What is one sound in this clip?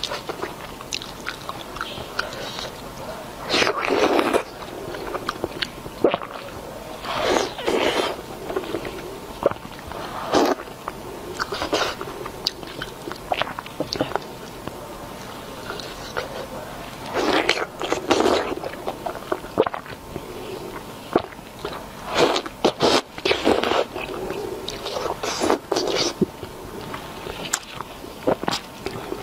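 Crunchy food crackles and squelches between fingers close to a microphone.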